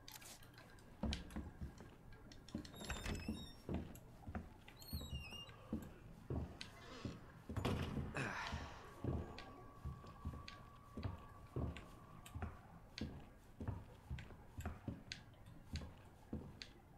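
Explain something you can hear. Footsteps thud at a steady walking pace on a hard floor.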